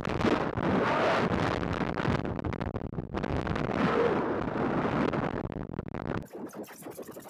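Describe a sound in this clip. Wind rushes over a rocket's body in flight.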